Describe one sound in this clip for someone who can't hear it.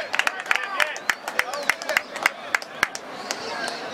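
A crowd of spectators claps its hands.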